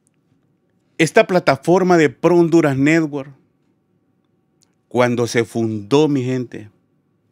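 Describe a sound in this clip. A man speaks with animation, close to a microphone.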